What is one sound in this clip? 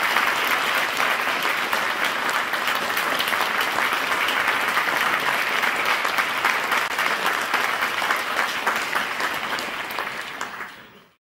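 An audience claps loudly in a large hall, then the clapping fades away.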